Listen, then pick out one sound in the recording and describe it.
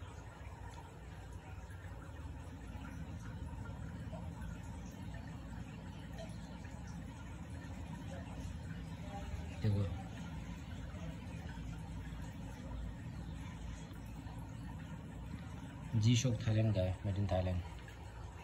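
Fingers handle a plastic watch with soft rustles and taps.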